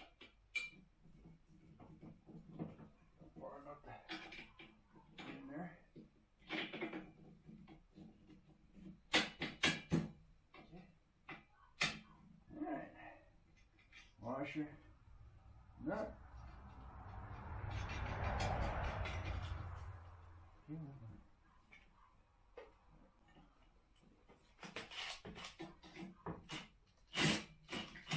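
Metal tools and parts clink and knock on a concrete floor.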